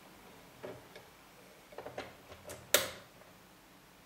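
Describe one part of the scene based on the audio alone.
A cable plug clicks into a socket.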